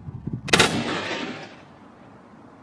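A rifle fires a single loud shot that echoes across open mountains.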